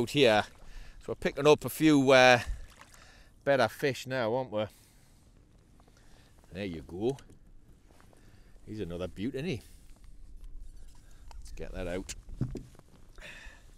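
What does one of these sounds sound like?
A middle-aged man talks with animation close to a microphone, outdoors in light wind.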